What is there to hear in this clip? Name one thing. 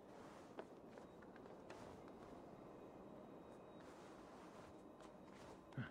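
Hands grip and scrape on stone during a climb.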